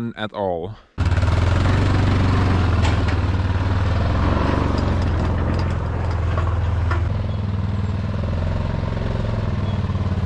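A quad bike engine idles and rumbles steadily.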